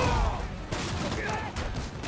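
A wooden crate smashes apart with a loud crack.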